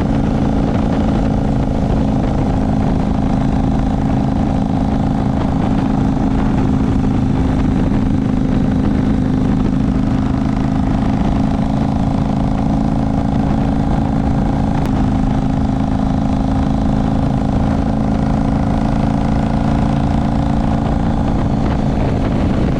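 Tyres roll on an asphalt road with a steady rush.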